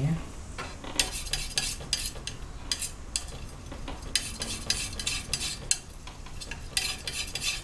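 A palette knife scrapes and taps on a palette.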